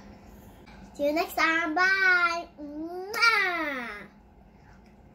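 A young girl sings loudly and brightly close by.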